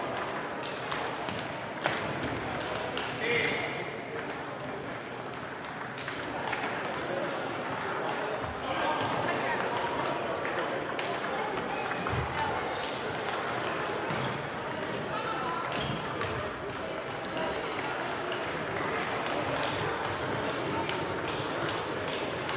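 A crowd of players murmurs and calls out in a large echoing hall.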